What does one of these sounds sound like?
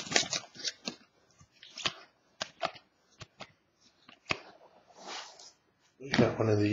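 A stack of trading cards is flicked and shuffled by hand.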